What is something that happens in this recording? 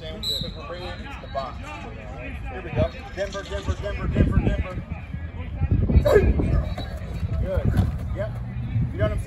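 Young men call out and chatter nearby outdoors.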